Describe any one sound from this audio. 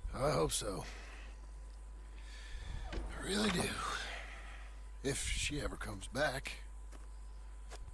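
A second man answers in a low, calm voice, close by.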